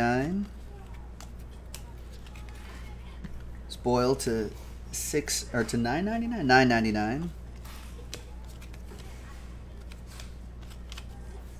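Trading cards rustle and slide as they are shuffled by hand.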